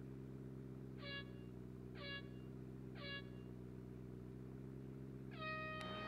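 Three short beeps count down at even intervals, followed by a longer, higher start tone.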